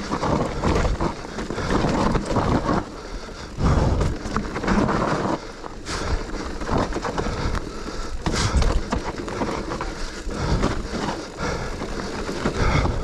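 Bicycle tyres rumble and crunch over a dirt trail with leaves and stones.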